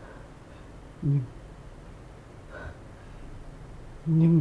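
A man groans close by.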